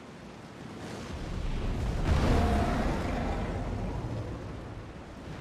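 A huge beast roars with a deep, rumbling growl.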